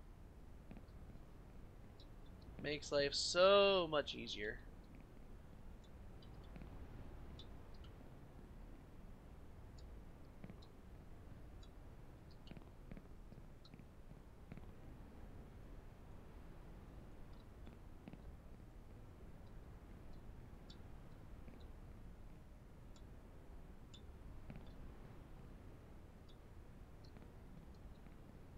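Footsteps tap softly on pavement.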